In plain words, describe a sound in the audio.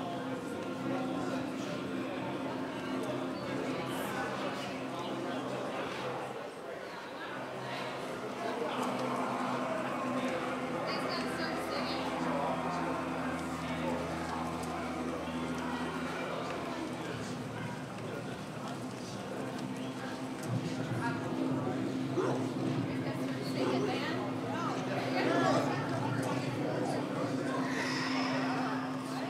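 A live band plays music through loudspeakers.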